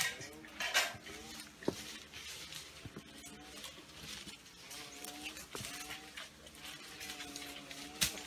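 Leaves rustle as branches are pulled and shaken.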